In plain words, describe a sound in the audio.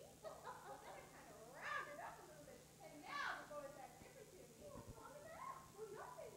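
A young woman speaks with animation, heard from a distance in a large hall.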